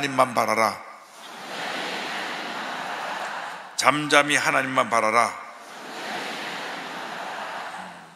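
A large crowd recites together in an echoing hall.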